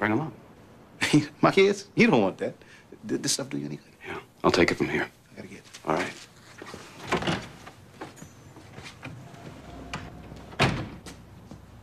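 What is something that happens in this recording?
A second man answers in a low, calm voice.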